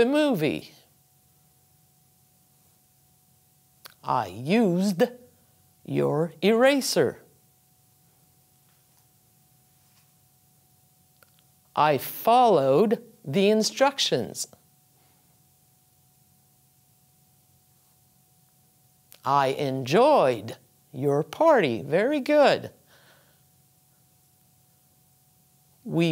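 An older woman speaks slowly and clearly into a close microphone, reading out short phrases with pauses between them.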